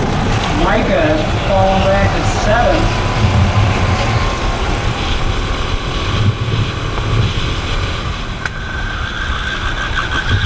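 A go-kart engine buzzes loudly up close.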